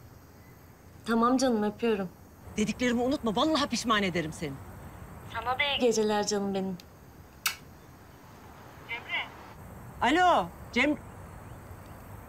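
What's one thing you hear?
A woman speaks with animation, heard through a phone.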